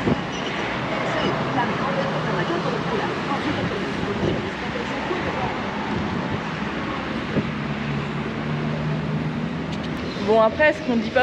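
Traffic hums steadily on a road below.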